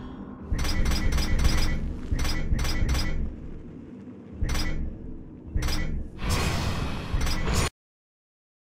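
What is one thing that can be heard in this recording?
Menu selection clicks chime quickly.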